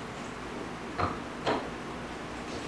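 Metal parts click and clack.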